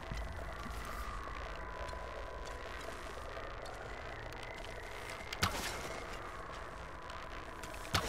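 A bowstring creaks as it is drawn tight.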